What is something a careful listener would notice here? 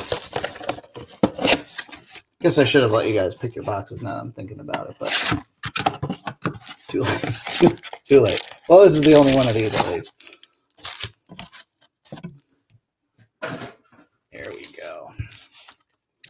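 Cardboard rustles and tears as a box is torn open.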